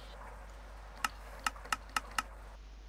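Quick clicks sound one after another as pages are flipped.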